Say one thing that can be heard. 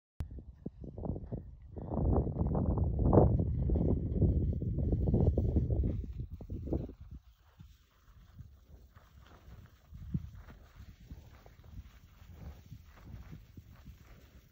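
Skis scrape and hiss over crusty snow.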